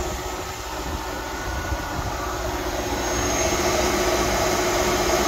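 A car engine idles steadily, growing louder up close.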